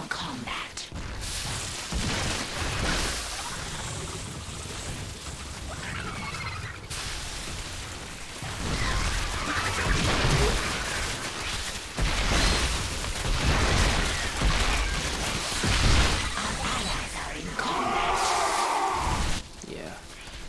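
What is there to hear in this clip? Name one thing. Game battle sounds of blasts and explosions crackle rapidly.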